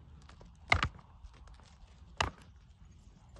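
Two goats butt heads with sharp knocks.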